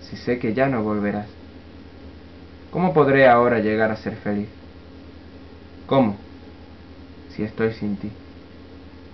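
A young man sings softly close to the microphone.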